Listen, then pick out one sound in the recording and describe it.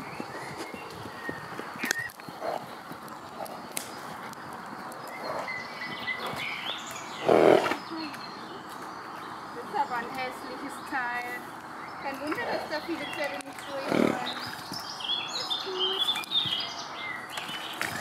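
A horse's hooves thud while walking on a dirt path.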